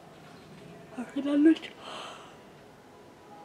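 A middle-aged woman yawns loudly.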